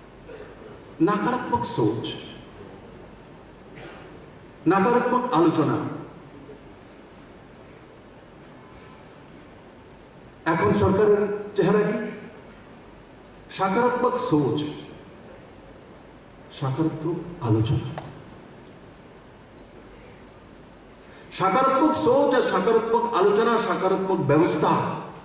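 A man speaks forcefully into a microphone through a loudspeaker, in bursts with pauses.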